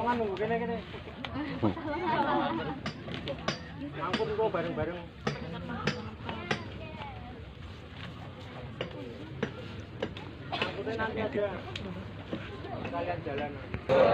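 Young people talk quietly nearby.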